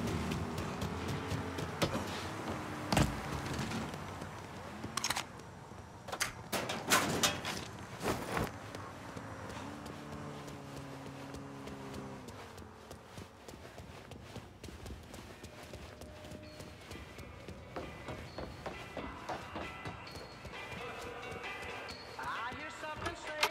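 Footsteps run quickly across hard floors.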